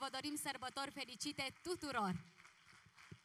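A man sings loudly through a microphone.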